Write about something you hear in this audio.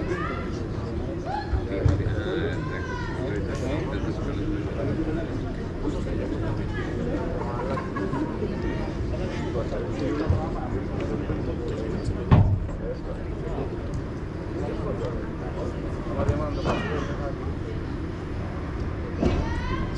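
Players call out to each other across an outdoor court.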